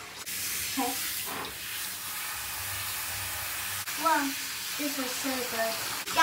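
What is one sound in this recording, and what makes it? Water sprays from a shower head onto hair.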